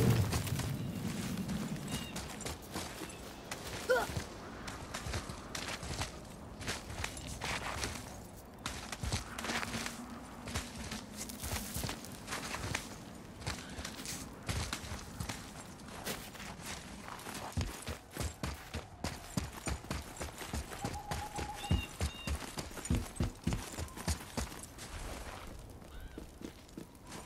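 Heavy footsteps crunch through snow.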